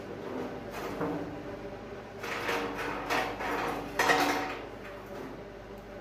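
An angle grinder whines and grinds against metal in short bursts.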